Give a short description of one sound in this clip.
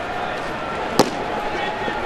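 A baseball smacks into a leather glove.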